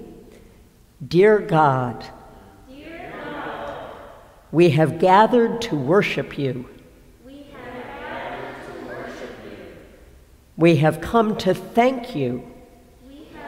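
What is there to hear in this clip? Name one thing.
A woman reads out calmly and slowly through a microphone in a large echoing hall, pausing between phrases.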